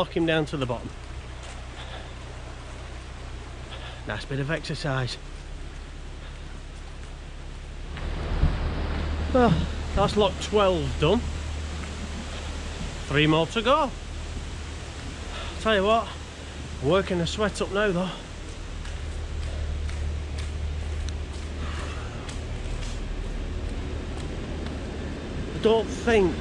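A man talks calmly outdoors, close by.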